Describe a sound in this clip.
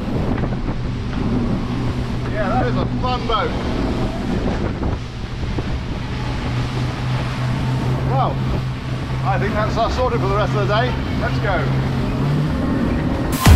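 Water splashes and churns behind a fast boat.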